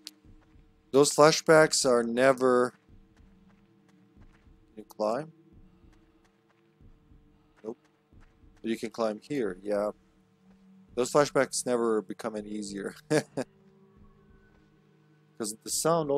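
A young man talks into a microphone in short bursts, with animation.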